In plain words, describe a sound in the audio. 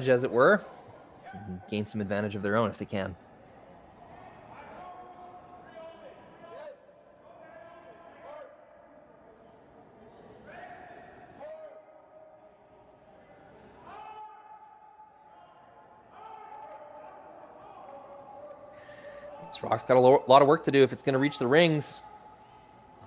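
Men shout loudly across an echoing rink.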